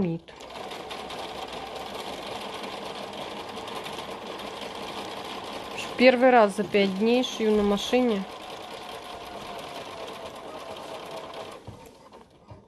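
A sewing machine hums steadily as it stitches.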